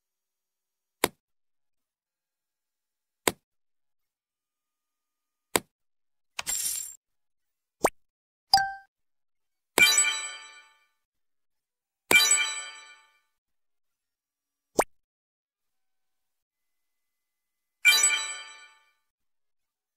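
Short electronic clicks and chimes sound as items drop into place in a game.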